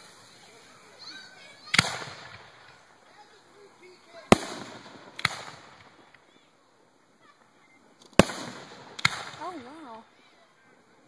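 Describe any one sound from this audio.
Firework rockets whistle as they climb.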